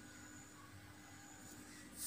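A comb pulls through hair.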